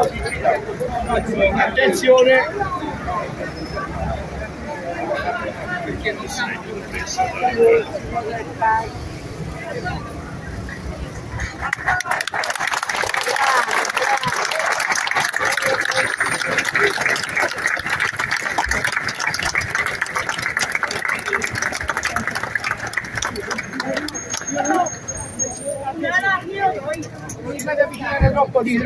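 A crowd of men and women murmurs and talks nearby.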